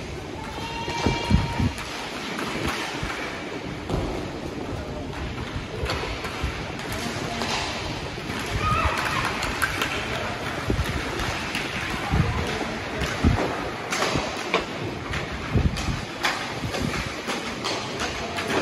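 A plastic ball knocks against sticks and boards.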